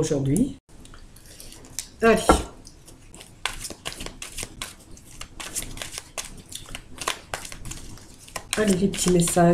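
Playing cards are shuffled with quick, soft flicking clicks.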